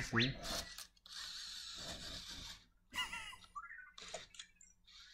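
A small robot's motors whir as it turns on its treads.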